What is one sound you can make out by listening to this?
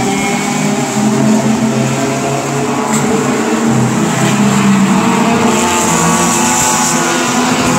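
Racing car engines roar and whine as the cars speed around a track.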